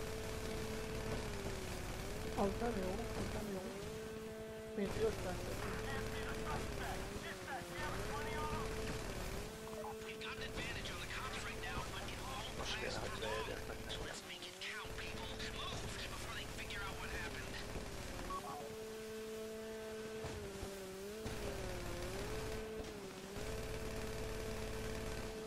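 A jet ski engine whines steadily, dipping in pitch now and then.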